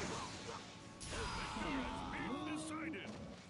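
Flames whoosh and crackle.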